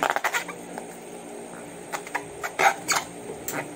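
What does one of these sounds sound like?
Small clicks and taps sound as a plastic bottle is handled.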